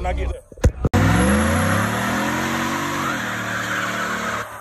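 Car tyres screech while spinning.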